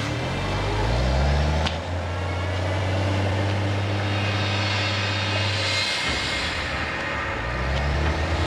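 Steam rushes out with a loud, steady roar.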